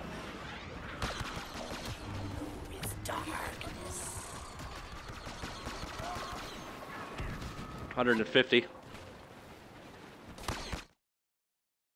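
Blaster guns fire in rapid bursts.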